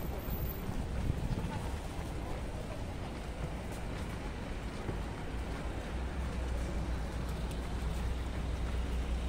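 Busy city street noise hums steadily outdoors.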